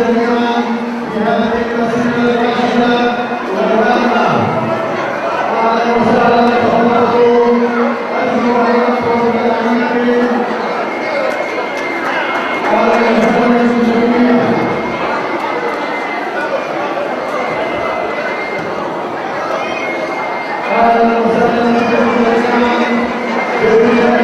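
A crowd of men and women murmurs and talks in a large echoing hall.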